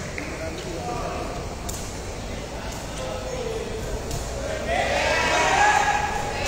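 People chatter in a large echoing hall.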